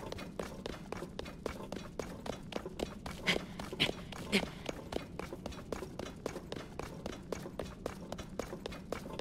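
Quick, rhythmic scuffing steps scrape against rock as a climber scrambles upward.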